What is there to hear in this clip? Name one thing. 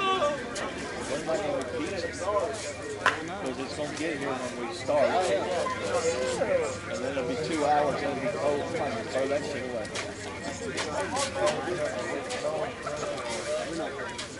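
Men talk and call out to each other across an open field.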